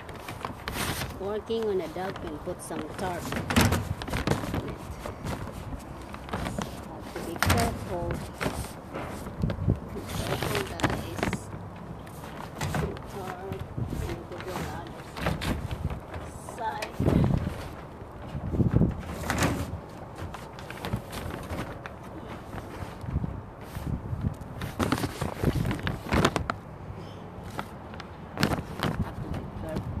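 A young woman talks close by, in short bursts.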